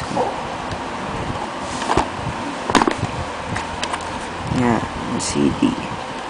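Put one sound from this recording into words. A plastic disc case clicks open.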